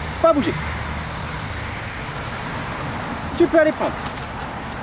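A man calls out short commands to a dog.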